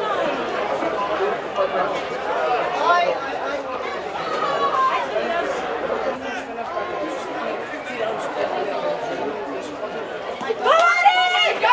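Young men shout loudly on a playing field.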